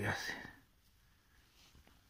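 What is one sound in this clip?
Fingers crumble and sift through damp soil.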